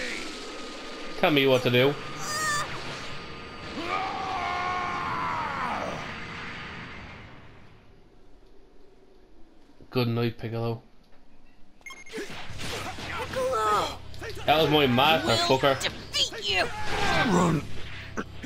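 An energy blast explodes with a roar.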